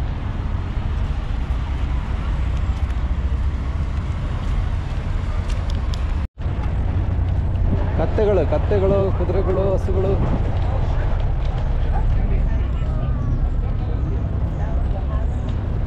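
Wind blows steadily, rumbling against the microphone outdoors.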